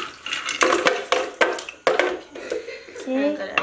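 Plastic clatters against a blender jar.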